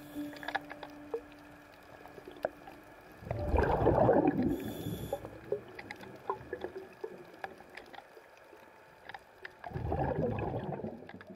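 Faint clicks and crackles patter all through, heard underwater.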